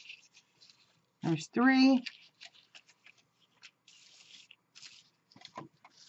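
Card stock rustles and crinkles as hands fold and handle it.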